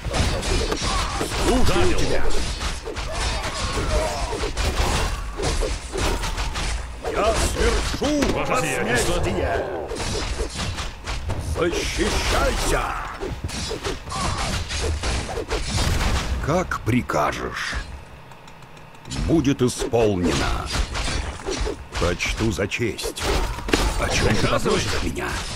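Swords and weapons clash in a noisy battle.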